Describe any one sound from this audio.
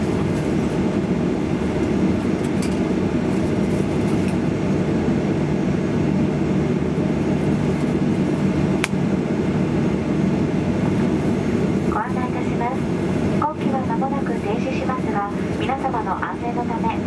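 A parked jet's engine hums with a steady low roar.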